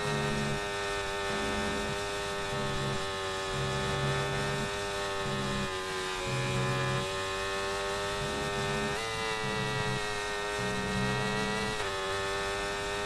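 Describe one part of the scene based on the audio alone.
A racing car engine whines steadily at high revs, briefly jumping in pitch as it shifts gear.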